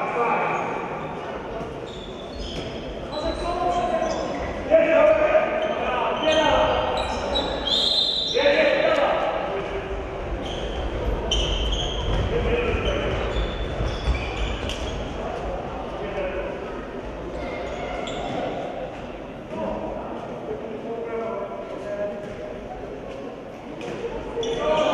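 A ball bounces on a wooden floor.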